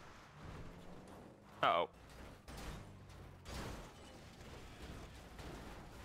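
A car crashes and tumbles onto its roof.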